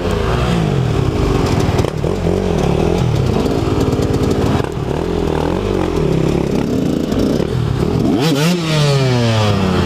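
A second dirt bike engine revs nearby.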